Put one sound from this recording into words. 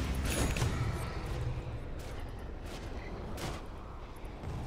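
Magic spell effects whoosh and crackle in bursts.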